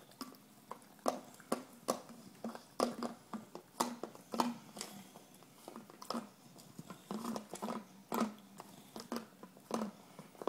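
A plastic bottle crinkles and knocks against the floor.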